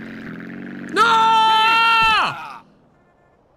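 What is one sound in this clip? A young man screams loudly and close to a microphone.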